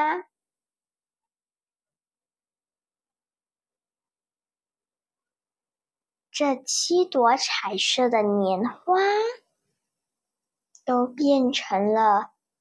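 A young girl speaks calmly and softly into a clip-on microphone, with long pauses.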